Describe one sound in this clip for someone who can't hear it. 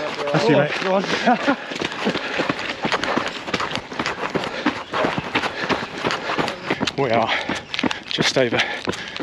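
Running footsteps crunch on a gravel path.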